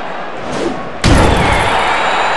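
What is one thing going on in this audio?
A heavy body slams down onto a hard surface.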